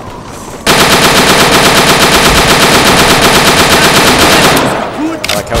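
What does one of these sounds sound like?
A machine gun fires in a long rapid burst.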